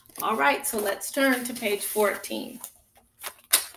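A woman speaks clearly and with animation, close to a microphone.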